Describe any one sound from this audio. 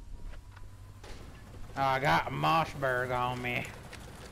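Footsteps run quickly on a paved road.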